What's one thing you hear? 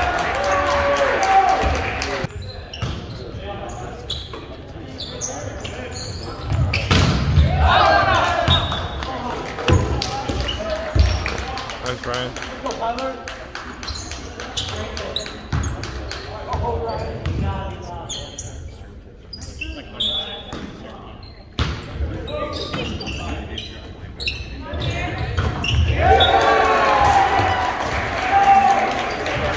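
Players call out and shout across a large echoing gym.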